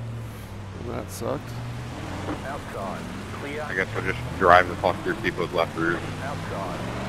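A man speaks casually into a headset microphone.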